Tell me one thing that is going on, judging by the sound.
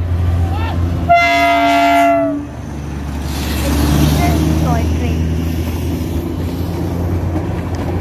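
Train wheels clatter on the rails as the train passes.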